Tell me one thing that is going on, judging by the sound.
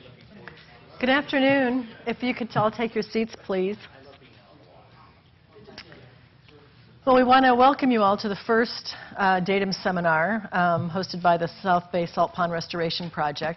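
A woman speaks into a microphone in a large room.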